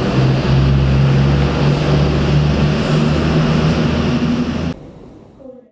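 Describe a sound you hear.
A diesel train engine idles with a low, steady hum.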